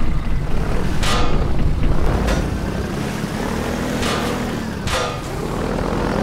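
Water splashes against a boat's hull in short bursts.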